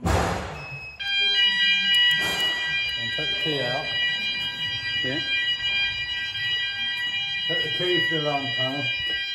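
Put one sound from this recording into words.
A fire alarm sounds with a steady, shrill ringing.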